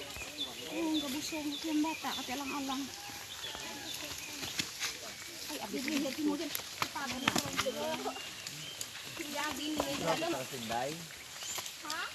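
Footsteps rustle through grass and bushes.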